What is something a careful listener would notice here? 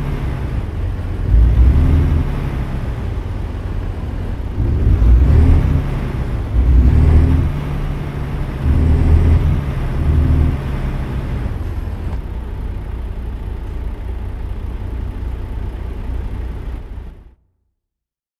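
A truck's diesel engine idles with a deep rumble that swells now and then.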